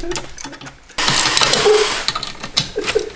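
A ratchet wrench clicks as a bolt is tightened.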